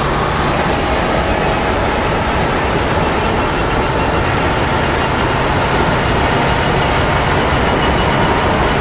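A racing car engine roars loudly at high speed, climbing steadily through the gear.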